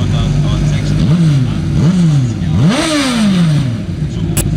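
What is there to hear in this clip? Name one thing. A racing car engine revs sharply up and down several times.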